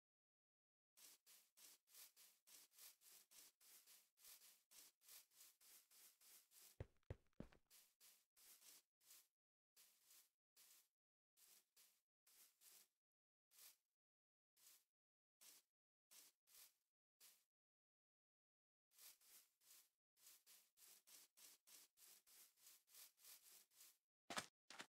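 Footsteps crunch quickly and steadily on grass.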